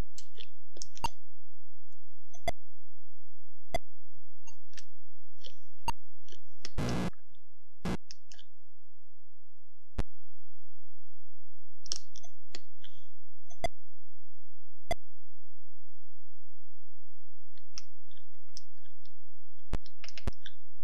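Short electronic blips sound as checkers pieces jump and move.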